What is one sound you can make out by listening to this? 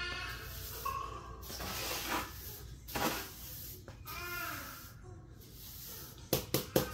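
A broom sweeps across a tiled floor with soft swishes.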